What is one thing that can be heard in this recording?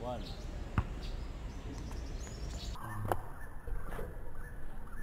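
A basketball bounces on hard outdoor ground.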